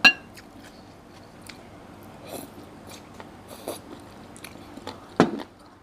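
A woman slurps and chews food up close.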